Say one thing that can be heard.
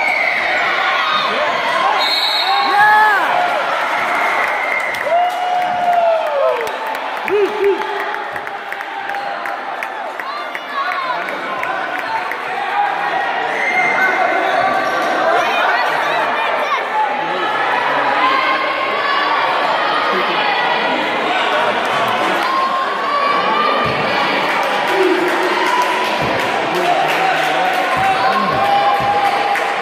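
Spectators chatter and call out in an echoing gym.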